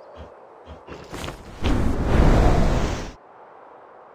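Wind rushes loudly during a fall through the air.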